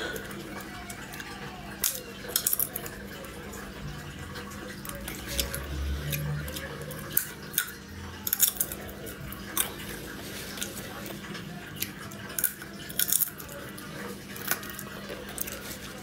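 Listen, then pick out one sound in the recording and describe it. A woman eats, with soft crunching and chewing sounds close by.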